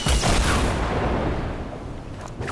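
Wind rushes loudly past a falling game character, then quickly fades.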